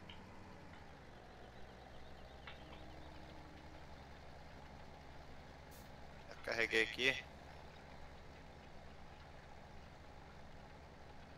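A tractor engine hums steadily at a low pitch.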